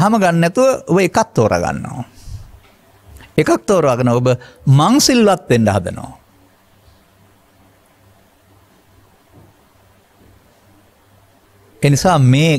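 An elderly man speaks calmly into a microphone, with pauses.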